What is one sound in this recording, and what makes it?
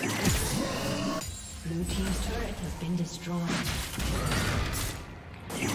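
Video game combat sound effects clash and burst.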